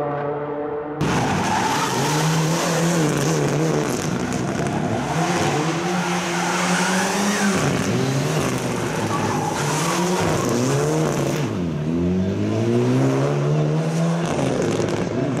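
A rally car engine revs up and down sharply as the car drifts through turns.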